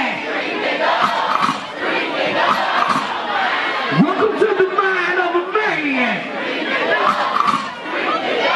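A large crowd cheers and sings along loudly.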